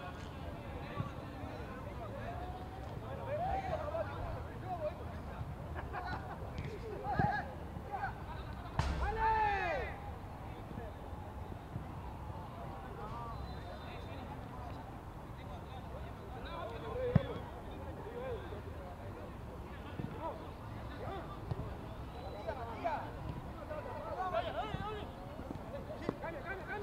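Young men shout and call out to each other across an open outdoor field.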